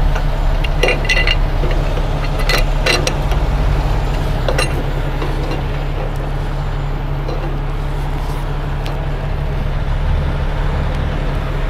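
An engine hums steadily nearby.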